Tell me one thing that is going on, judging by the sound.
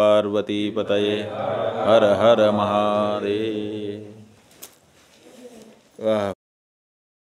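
A middle-aged man speaks calmly and steadily into a close microphone.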